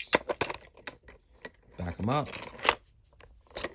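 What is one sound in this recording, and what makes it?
A small plastic toy ramp clicks and clacks as it is handled.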